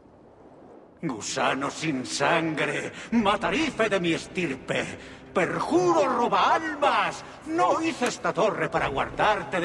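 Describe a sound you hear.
A man shouts angrily and with passion.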